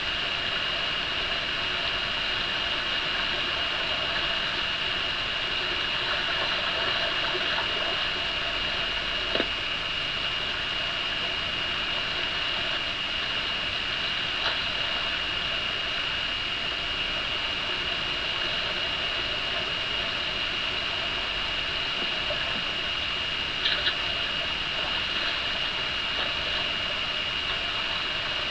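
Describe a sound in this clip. A stream flows and gurgles over rocks.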